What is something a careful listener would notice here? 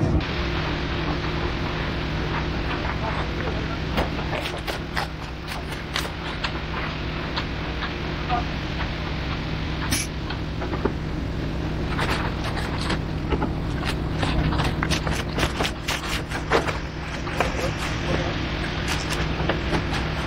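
Wet concrete scrapes and slaps under rakes and screeds.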